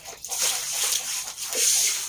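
Water pours and splashes onto the ground.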